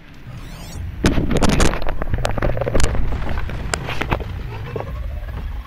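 An electronic scanning tone hums and chimes.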